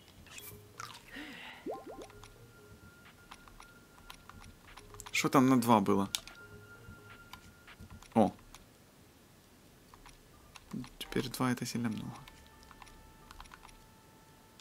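Soft menu clicks tick as a cursor moves from item to item.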